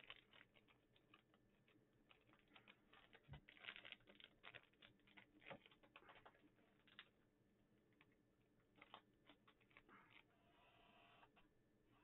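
Plastic card wrappers crinkle and rustle in a man's hands.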